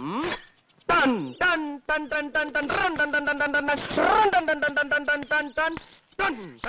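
Several men shout and jeer together.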